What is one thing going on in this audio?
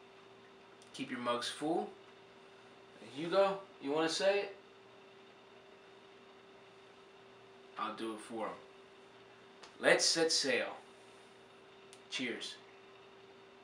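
A middle-aged man talks close by with animation, in short bursts.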